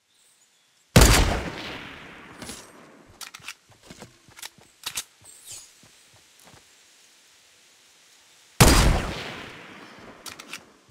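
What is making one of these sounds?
A rifle fires two loud shots that echo away.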